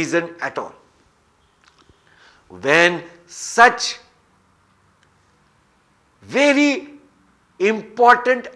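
A middle-aged man speaks calmly and expressively, close to a microphone, with pauses.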